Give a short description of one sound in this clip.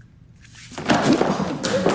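Papers rustle as they are tossed onto a table.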